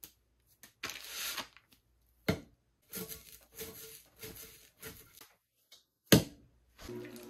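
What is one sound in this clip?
Clay slaps down onto a potter's wheel.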